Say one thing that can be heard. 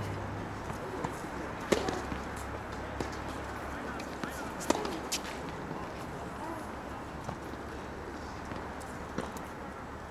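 Tennis balls bounce on a hard court.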